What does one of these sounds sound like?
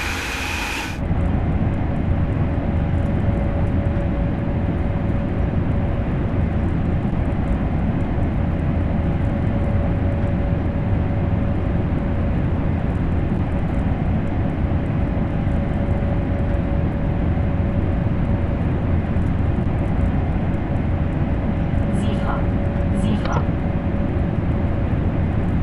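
A train's cab hums with a steady low rumble of wheels on rails at speed.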